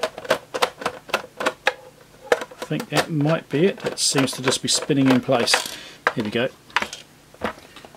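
Plastic parts of a case click and snap as hands pry it apart.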